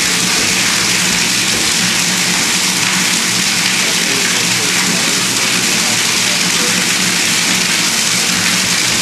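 A mixer motor hums steadily with a loud rushing roar, echoing inside a metal tank.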